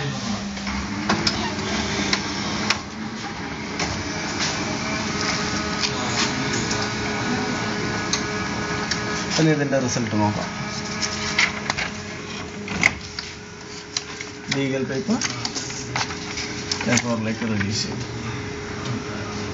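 A printer hums and whirs as it feeds paper.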